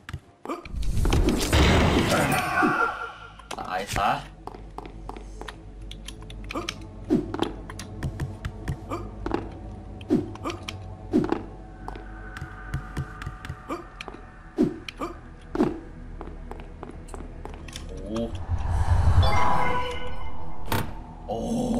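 A young man talks into a close microphone, now and then with animation.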